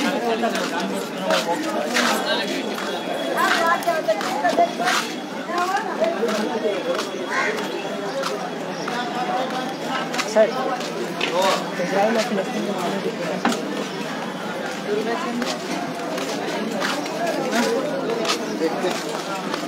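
A crowd of men and women chatter all around in a busy street.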